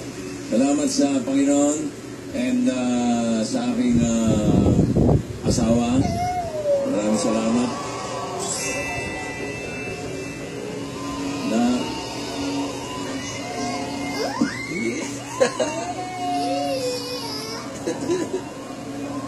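A man speaks with animation into a microphone, heard through a television speaker.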